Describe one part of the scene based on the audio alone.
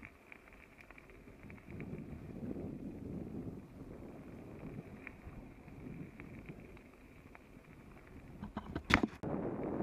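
Wind buffets outdoors with a low rumble.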